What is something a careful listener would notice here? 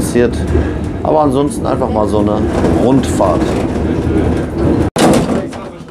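A train carriage rumbles and rattles as it rolls along.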